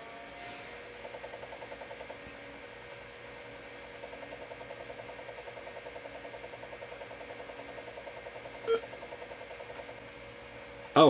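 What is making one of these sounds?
A floppy disk drive whirs and buzzes as it reads.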